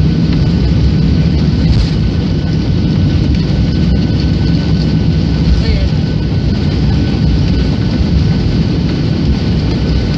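Wheels rumble steadily over a runway.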